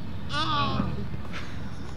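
A young man calls out outdoors.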